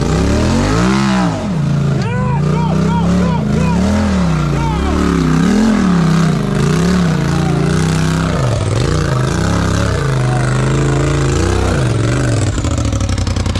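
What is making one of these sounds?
An off-road vehicle's engine revs up and down as it climbs over rocks.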